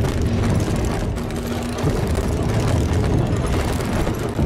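Metal bed frames creak and rattle as something heavy crawls over them.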